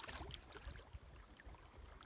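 Small waves lap and splash in wind.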